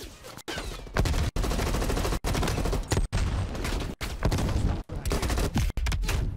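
A rifle fires rapid bursts of loud, close gunshots.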